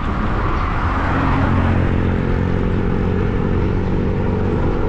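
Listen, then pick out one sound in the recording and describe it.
A car engine hums as a car approaches along the road.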